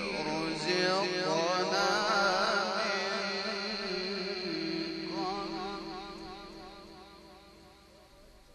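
A man chants loudly with a wavering voice through a loudspeaker, then fades away.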